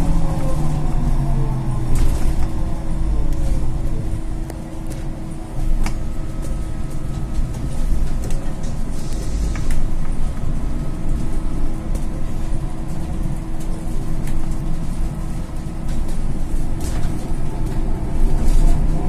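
The bus body rattles and clatters as it rolls over the road.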